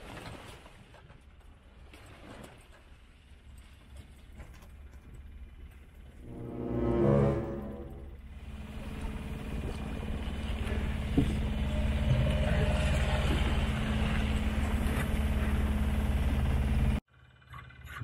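Water rushes and splashes as it churns past a sailboat's hull.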